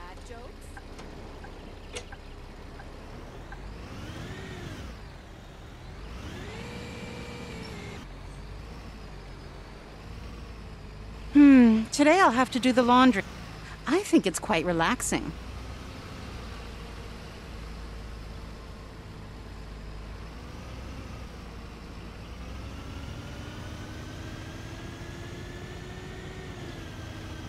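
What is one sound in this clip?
A bus engine hums and rises and falls in pitch as it drives.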